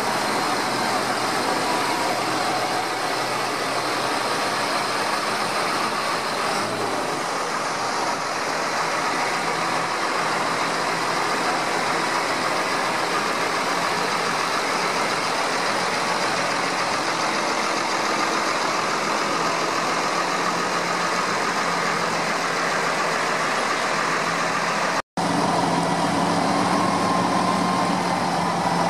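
Tractor engines rumble and drone steadily as they drive past.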